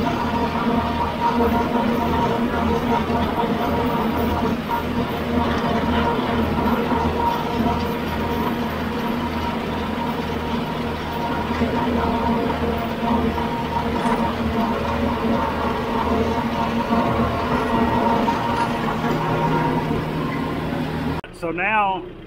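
A rotary mower whirs as it cuts through grass.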